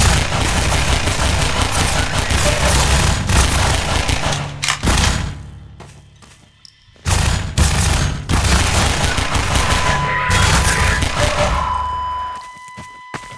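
Pistol shots fire in rapid, loud bursts.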